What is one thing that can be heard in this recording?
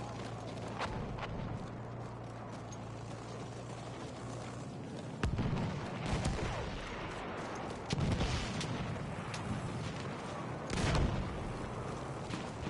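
Footsteps run over rocky ground.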